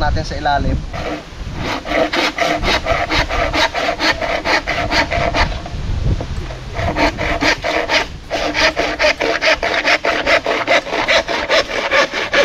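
A hand saw cuts back and forth through bamboo with a steady rasping rhythm.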